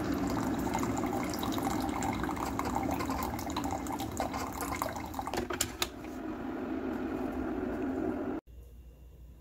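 A coffee machine hums as coffee streams into a cup.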